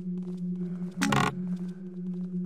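A wooden chest lid creaks open.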